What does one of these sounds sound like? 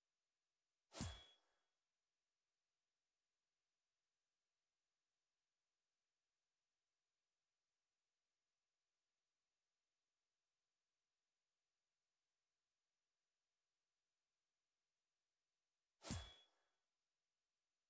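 A short game menu sound plays as a selection changes.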